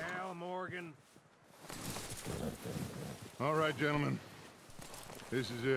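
Horses' hooves crunch through snow.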